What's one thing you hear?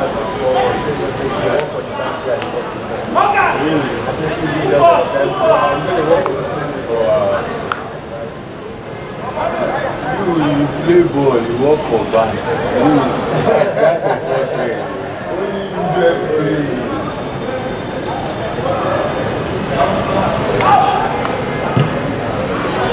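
Young men shout to one another across an open outdoor pitch.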